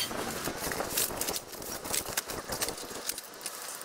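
Fabric rustles as a man handles a folded cloth bag.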